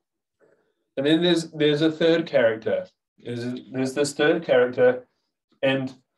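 A man speaks calmly and clearly over an online call.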